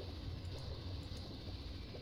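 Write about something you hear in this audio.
Bubbles gurgle briefly.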